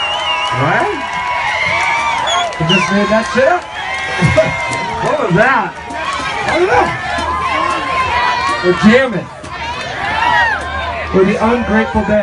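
A crowd of young people screams and cheers loudly nearby.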